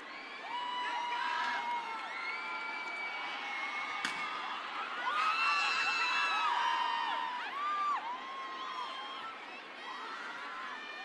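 A young woman sings through loudspeakers in a large echoing arena.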